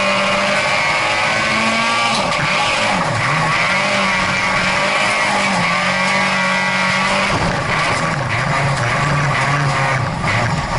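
A race car engine roars loudly from inside the cabin, revving up and down through the gears.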